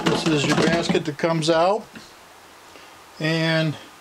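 A wire basket rattles as it is lifted out of a cooler.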